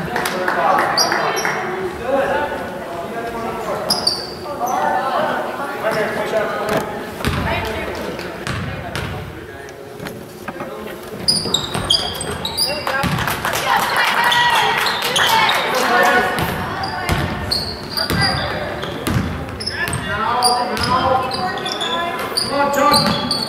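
Spectators talk and call out in a large echoing gym.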